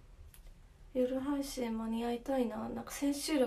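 A young woman speaks close to the microphone, in a soft, melodic voice.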